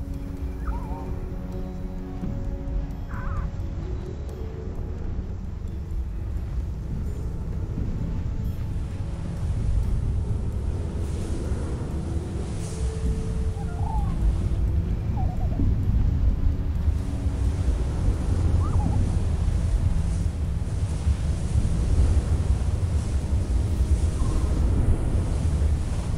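Wind roars steadily across open ground, growing stronger.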